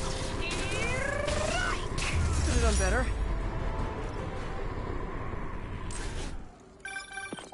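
A powerful energy blast roars and hisses loudly.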